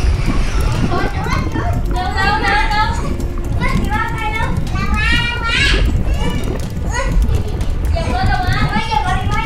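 A young girl talks excitedly in a high voice nearby.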